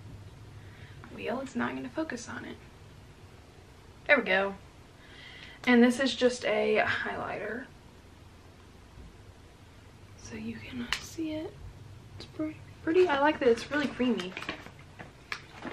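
A young woman talks casually and close by.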